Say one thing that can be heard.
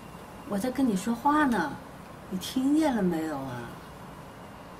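An elderly woman speaks close by in a pleading voice.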